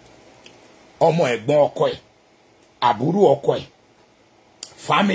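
A man speaks calmly and closely in short phrases.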